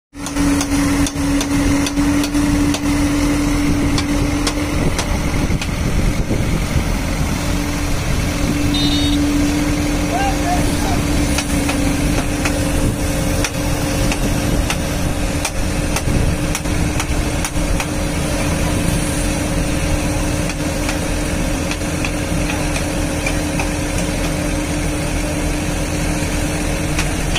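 An excavator's diesel engine rumbles and hums steadily close by.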